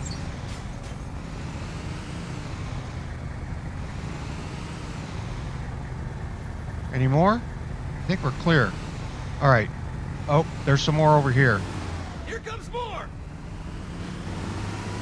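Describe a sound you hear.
A vehicle engine hums steadily as it drives along.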